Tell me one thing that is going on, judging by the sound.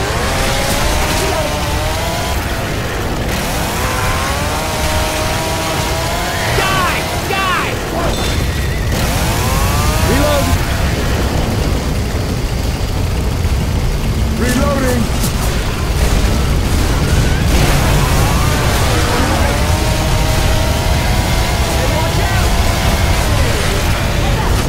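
A chainsaw engine roars and revs steadily throughout.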